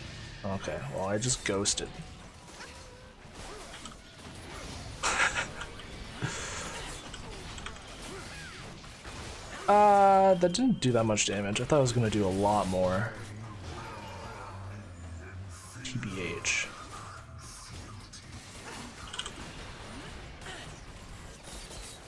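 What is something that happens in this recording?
Magic blasts and hits burst in a fast video game fight.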